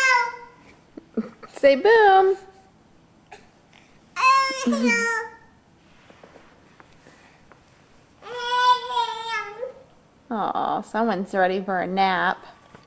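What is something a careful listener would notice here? A baby squeals and babbles loudly close by.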